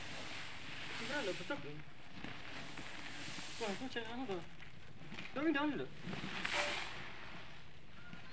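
A broom sweeps across the ground.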